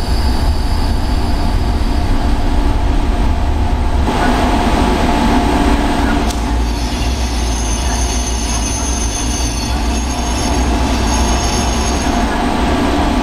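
A train engine rumbles steadily.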